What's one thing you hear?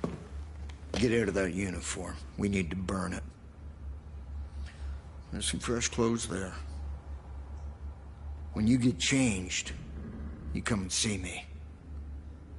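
An elderly man speaks calmly in a low voice, close by.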